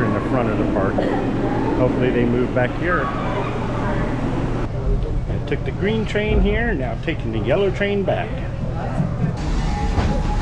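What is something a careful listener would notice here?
A middle-aged man talks with animation close to the microphone.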